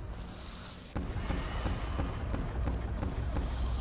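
A ray gun fires rapid electronic zaps.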